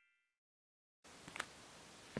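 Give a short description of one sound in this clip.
Footsteps crunch softly on dry forest ground.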